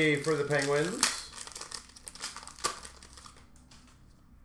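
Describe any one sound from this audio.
A foil card pack crinkles and rustles in someone's hands.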